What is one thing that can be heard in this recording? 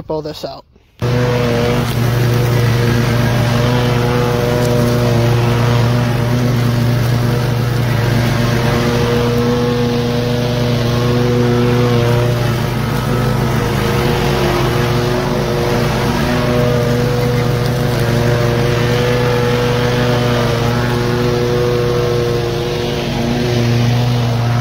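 A riding mower engine drones steadily close by.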